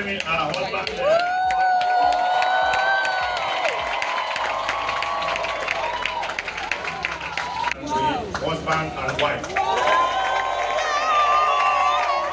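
A crowd sings loudly and joyfully.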